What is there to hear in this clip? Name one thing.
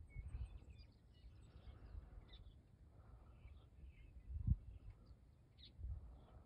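Wind gusts and buffets in the open air.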